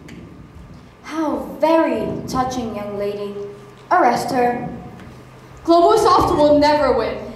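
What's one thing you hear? Young girls speak out loudly on a stage in a large hall.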